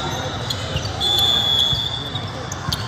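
A referee's whistle blows briefly.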